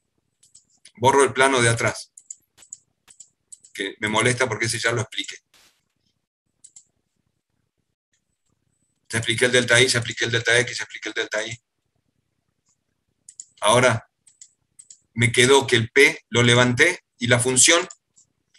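A middle-aged man speaks calmly in bursts over an online call.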